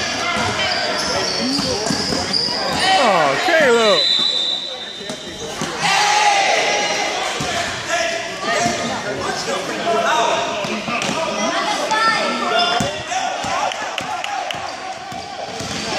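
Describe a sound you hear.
A basketball bounces on the floor as it is dribbled.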